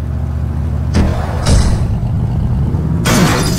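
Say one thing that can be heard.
A car engine starts and revs.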